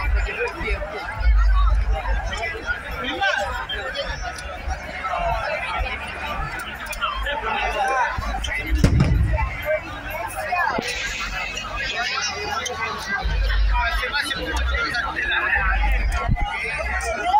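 A large crowd talks and shouts outdoors.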